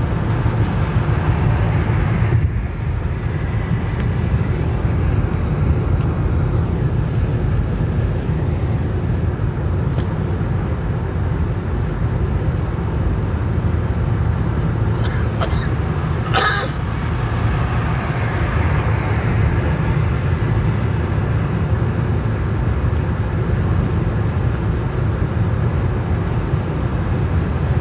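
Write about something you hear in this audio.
A car's engine hums steadily from inside the cabin.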